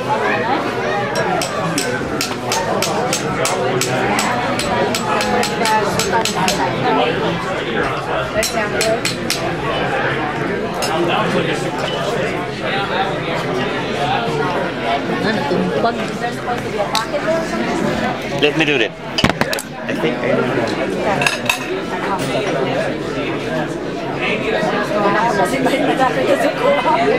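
A crowd of people chatter around the room.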